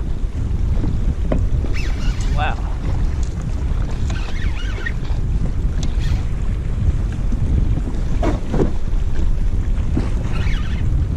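A fishing reel whirs as it is wound.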